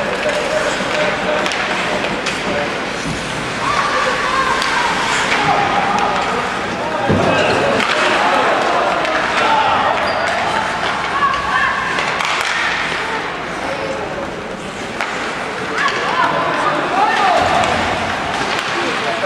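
A crowd chatters and shouts in a large echoing arena.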